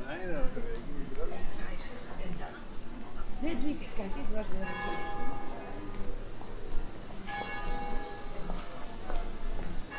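Men and women chat nearby as they stroll outdoors.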